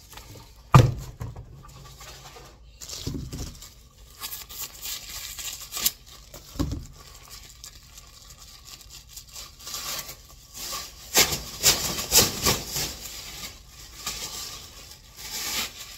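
Plastic bin bags rustle and crinkle as they are handled.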